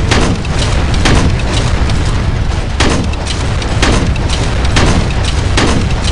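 A mounted machine gun fires in rapid bursts with a deep rumble.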